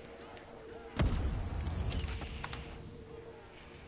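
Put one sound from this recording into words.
A gun fires a loud booming blast.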